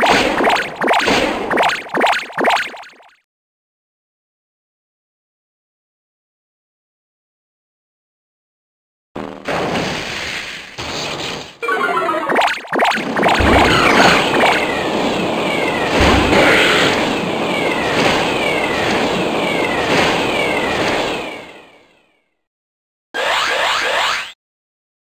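Video game battle effects whoosh, zap and crash in quick bursts.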